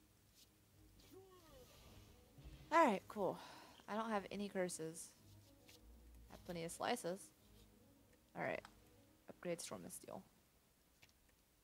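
A young woman talks casually and closely into a microphone.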